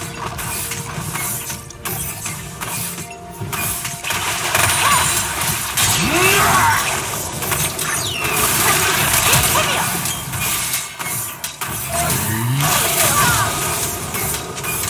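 Game spells whoosh and crackle as characters battle.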